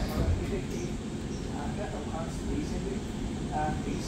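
Footsteps tap on a hard floor at a distance.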